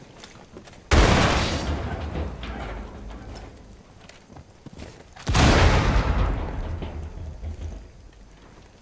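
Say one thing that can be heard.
A rifle fires two loud shots that echo and fade.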